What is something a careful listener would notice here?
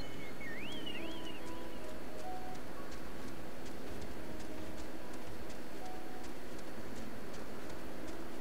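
Quick footsteps patter over the ground.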